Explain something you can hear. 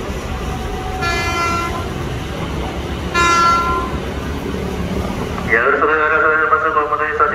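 A train horn sounds several times.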